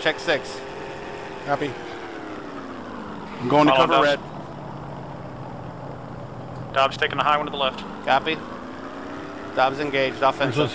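A propeller plane's engine drones steadily, its pitch slowly rising and falling.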